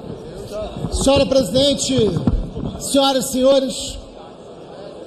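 A man speaks into a microphone through loudspeakers.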